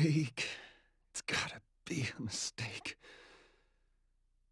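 A young man mutters in despair.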